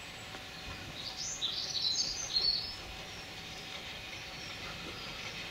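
A steam locomotive chugs slowly in the distance as it approaches.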